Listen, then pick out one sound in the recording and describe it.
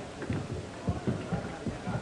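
Poker chips click on a table.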